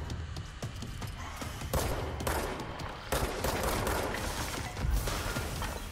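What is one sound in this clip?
A pistol fires rapid shots.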